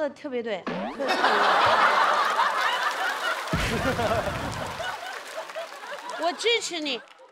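An audience laughs and cheers loudly.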